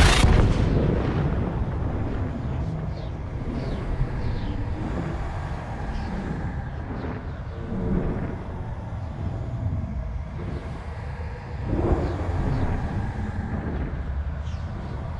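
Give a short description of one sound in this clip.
A spacecraft's engine rumbles with a deep, steady drone.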